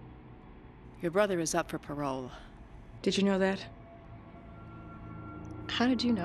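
A woman speaks calmly and quietly nearby.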